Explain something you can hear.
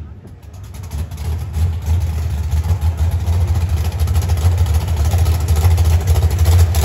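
Tyres spin and screech in a burnout.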